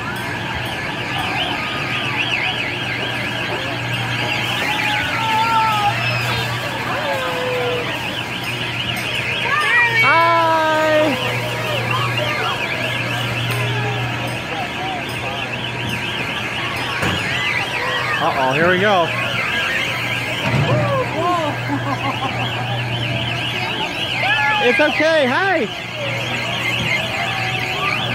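A crowd chatters outdoors in the background.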